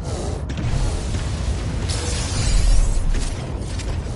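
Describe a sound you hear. A blast bursts with crackling sparks.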